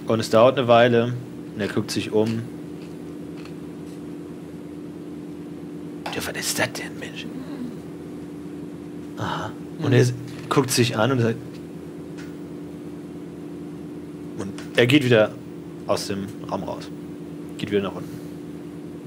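A man speaks calmly into a close microphone, in short bursts.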